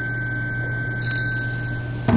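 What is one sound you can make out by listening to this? A small metal bell is struck and rings out.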